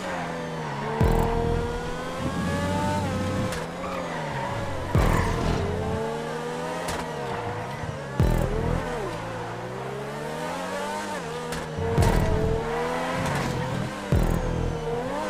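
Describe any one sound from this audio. A car scrapes and thumps against barriers.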